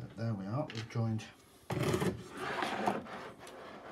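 A hollow plastic box knocks onto a table.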